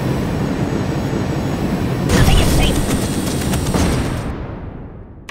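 A rocket roars with a fiery blast.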